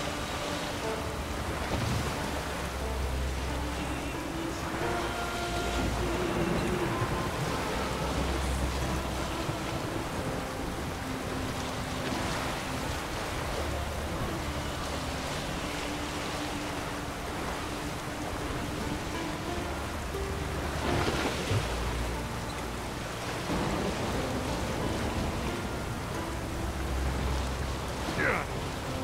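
Wind roars steadily across the sea.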